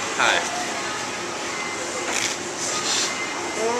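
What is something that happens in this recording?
A young man chews food.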